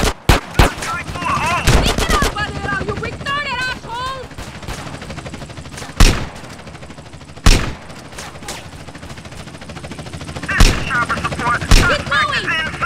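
Gunshots fire in sharp bursts, with short pauses between them.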